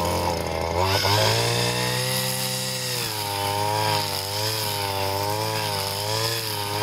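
A string trimmer engine whines loudly, its pitch wavering up and down.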